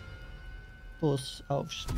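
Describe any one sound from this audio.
A man sings loudly nearby.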